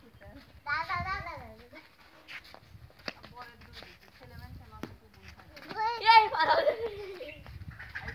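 Young children shout and call out playfully outdoors.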